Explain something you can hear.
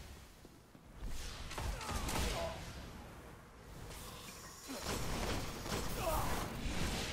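A rifle fires bursts of shots.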